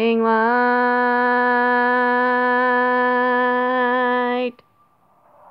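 Music plays through a loudspeaker, holding one loud sustained chord that cuts off suddenly.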